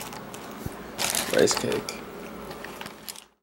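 A plastic bag crinkles as a hand reaches into it.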